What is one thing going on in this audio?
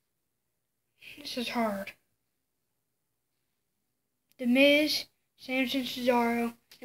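A boy speaks close to a microphone in short bursts with pauses between.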